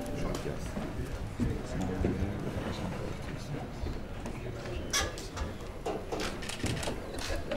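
A man speaks nearby in a noisy, echoing hall.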